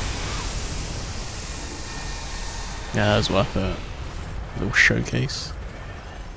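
A magical blast whooshes and bursts with a loud crackle.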